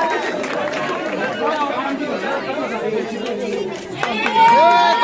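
A crowd of men and women chat and murmur close by, in a lively way.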